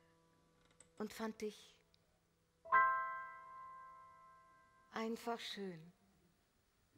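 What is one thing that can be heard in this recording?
A young woman speaks briefly.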